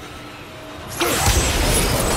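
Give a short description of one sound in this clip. An axe strikes a heavy metal lever with a loud clang.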